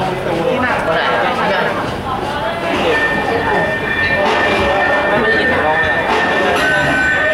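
An electric guitar plays loudly through an amplifier.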